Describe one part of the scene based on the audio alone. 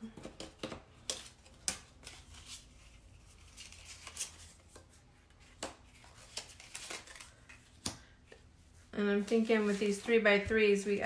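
Plastic sheets and paper rustle and tap softly against a table.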